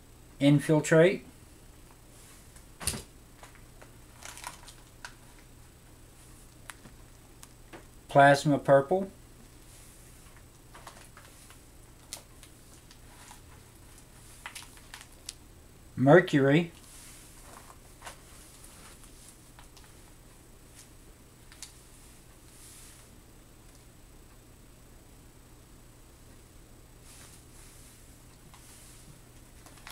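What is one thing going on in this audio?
Bundles of paper straws rustle as they are handled.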